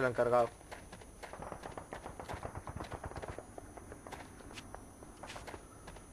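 Footsteps run quickly over dirt.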